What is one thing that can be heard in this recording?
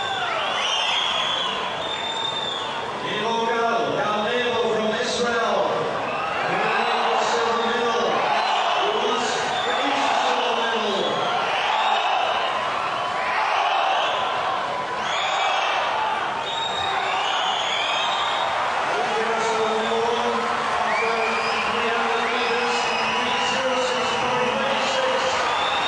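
Swimmers splash and churn through the water.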